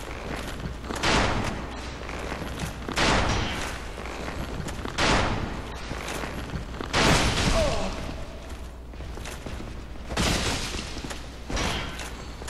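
A sword swings with a sharp whoosh.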